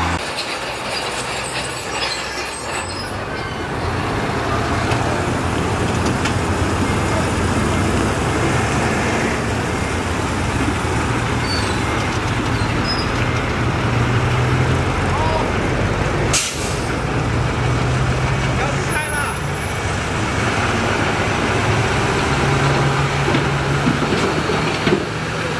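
Rocks and dirt scrape and grind under a bulldozer blade.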